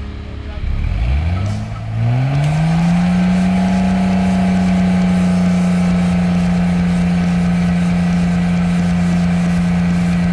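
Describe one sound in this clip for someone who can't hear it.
An engine winds up and then drones at a steady high pitch.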